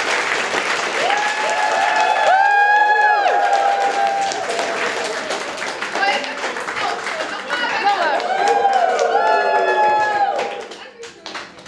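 People in a crowd whoop and shout with excitement.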